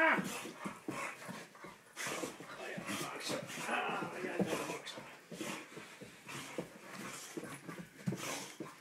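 A man talks playfully to a dog close by.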